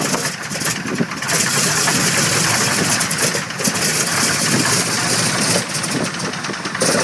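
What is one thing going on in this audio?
A propeller aircraft engine roars loudly close by.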